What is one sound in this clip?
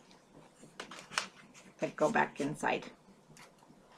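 Stiff paper rustles and crinkles.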